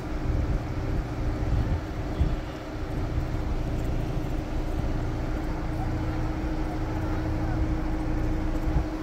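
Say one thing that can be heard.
An engine rumbles and idles low as a vehicle crawls slowly.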